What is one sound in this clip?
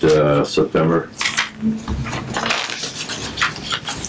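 Papers rustle on a table.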